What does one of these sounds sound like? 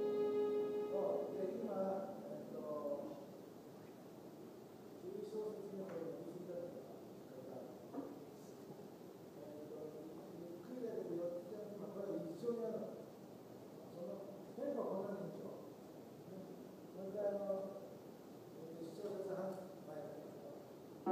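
A man speaks calmly at a distance.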